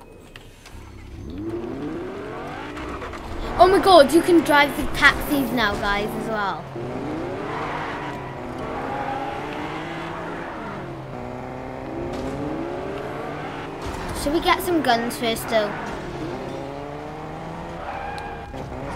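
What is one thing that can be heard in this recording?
A car engine revs and hums, rising and falling as it speeds up and slows down.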